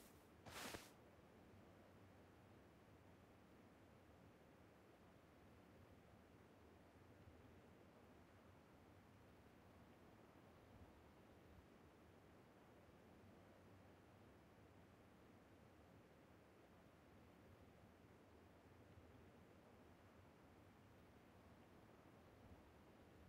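Wind blows steadily across open ground outdoors.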